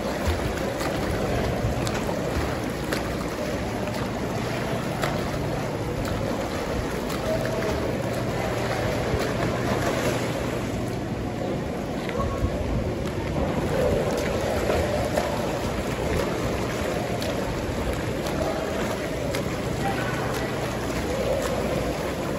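A swimmer splashes through water with steady strokes.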